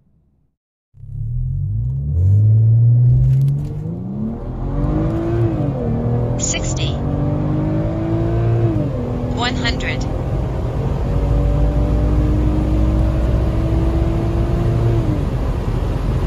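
A car engine roars as it accelerates hard, revving up and dropping back with each gear change.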